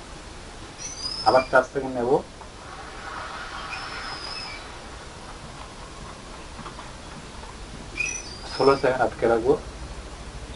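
A man hums or chants a short drawn-out tone, close by.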